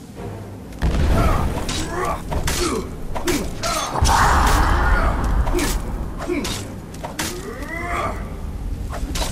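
A creature shrieks and growls.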